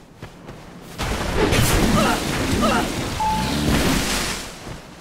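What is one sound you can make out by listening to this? A giant creature roars and grunts loudly.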